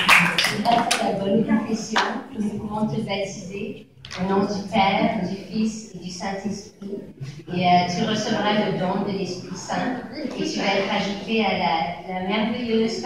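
A woman speaks calmly into a microphone through a loudspeaker.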